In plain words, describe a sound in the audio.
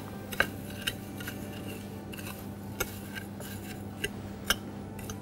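A metal fork clinks and scrapes against a ceramic plate.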